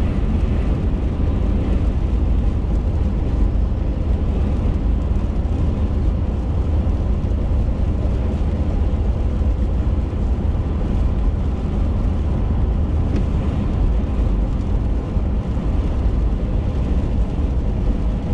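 A car engine hums steadily with a low road rumble.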